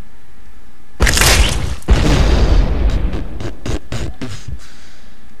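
An explosion booms loudly and crackles as it fades.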